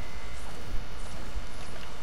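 A pickaxe strikes wood with a hollow thud.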